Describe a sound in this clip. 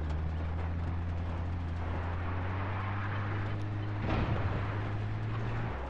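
Tyres rumble over a rough dirt track.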